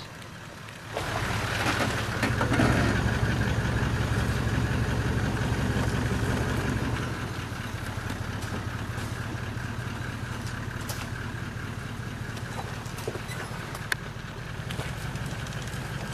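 Tyres crunch over dirt and rocks.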